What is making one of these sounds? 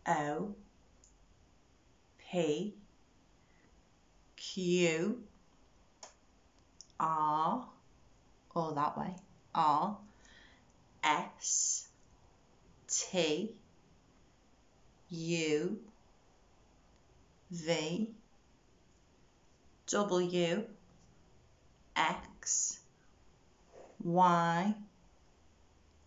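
A woman speaks calmly and clearly close to a microphone, in short phrases with pauses.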